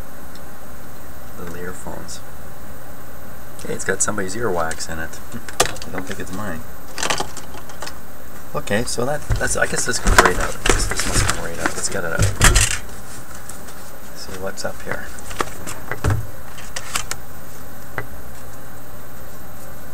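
Small plastic parts click and rattle as they are handled.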